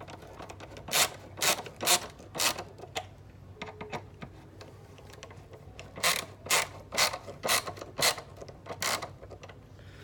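A screwdriver clicks and scrapes while turning screws into wood.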